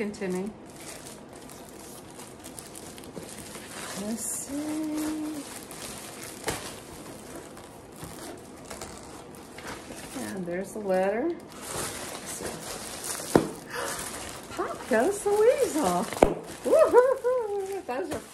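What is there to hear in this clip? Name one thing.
An elderly woman talks close by, with animation.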